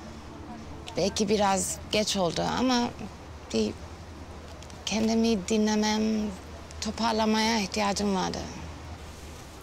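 A young woman speaks close by in a shaky, tearful voice.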